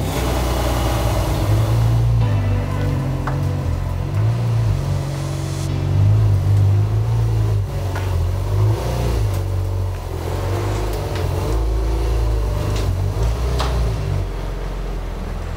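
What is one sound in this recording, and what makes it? A sports car engine rumbles deeply at low speed.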